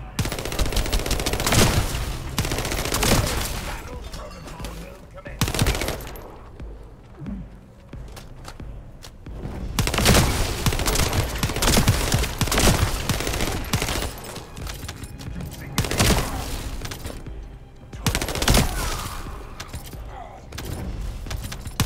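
Gunshots and blasts go off in quick bursts.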